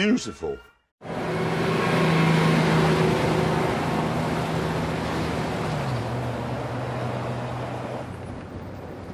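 Traffic rushes past on a road.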